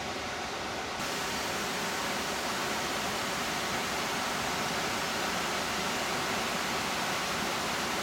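A shallow river rushes over rocks.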